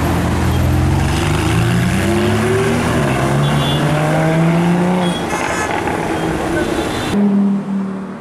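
A sports car engine roars and revs up through the gears close by.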